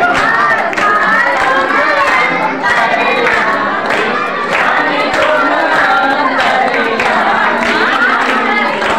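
A crowd of women sings together.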